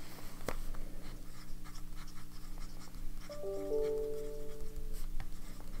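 A pen nib scratches softly on paper.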